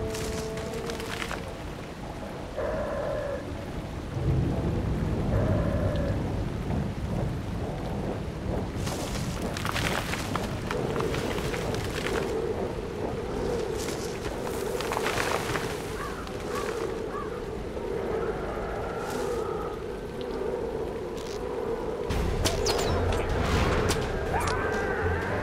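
Footsteps run steadily over gravel and stone.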